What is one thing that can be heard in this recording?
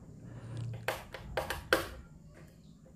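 Small plastic parts click and tap under fingers.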